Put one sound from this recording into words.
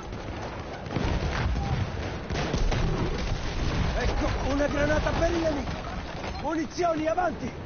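Rifle shots crack and boom in quick bursts.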